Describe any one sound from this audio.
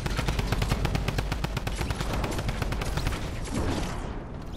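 Wind rushes past a glider in flight.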